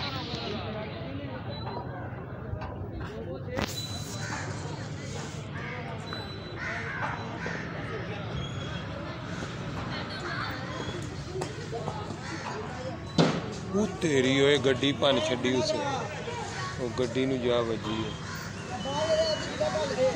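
Young men talk and call out nearby outdoors.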